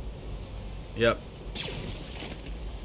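A blaster rifle fires sharp electronic shots.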